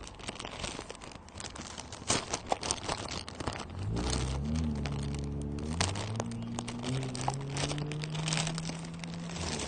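Fabric rubs and rustles against the microphone.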